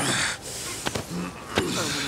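A man asks calmly and with concern, close by.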